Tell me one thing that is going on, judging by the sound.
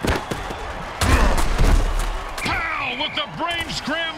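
Heavy armored players crash together with a loud thud.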